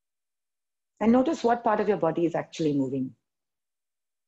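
A woman speaks calmly and briefly, heard through an online call.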